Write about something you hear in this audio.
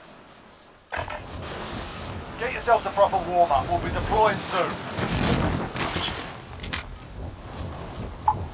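Wind rushes loudly past during a fast freefall.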